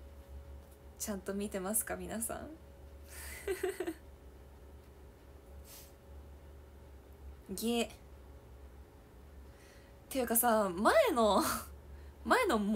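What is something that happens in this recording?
A young woman talks animatedly close to a microphone.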